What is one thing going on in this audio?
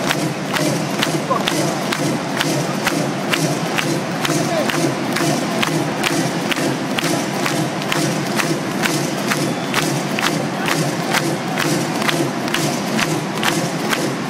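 A rock band plays loudly in a large echoing arena.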